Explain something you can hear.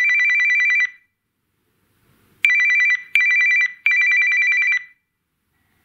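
A phone ringtone plays rapid, high electronic beeps in short bursts.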